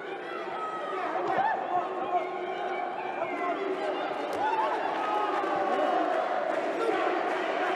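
Boxing gloves thud against bodies in quick blows.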